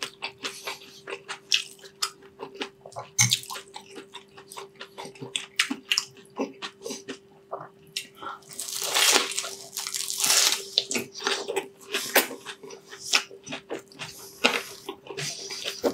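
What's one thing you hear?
A man chews crunchy fried food loudly and wetly, close to a microphone.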